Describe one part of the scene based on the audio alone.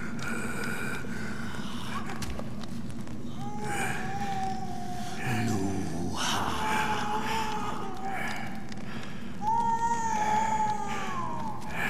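Fire crackles nearby.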